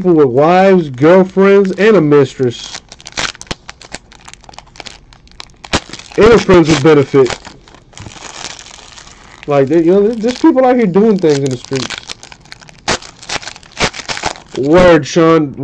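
A foil card pack crinkles and tears as hands rip it open.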